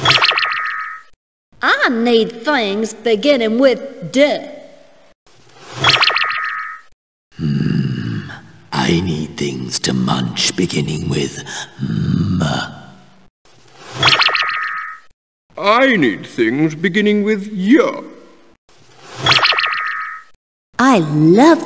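A bright twinkling chime rings out.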